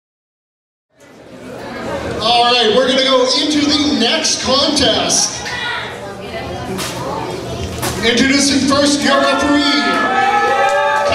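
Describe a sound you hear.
A man speaks loudly over a loudspeaker in an echoing hall.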